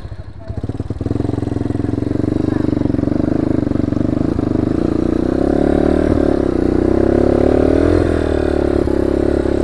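A motorcycle engine revs louder as the bike climbs over bumpy ground.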